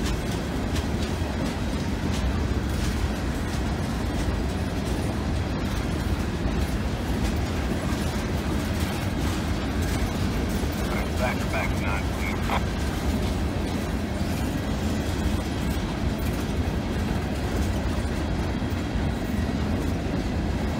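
Train wheels clack and squeal over the rails.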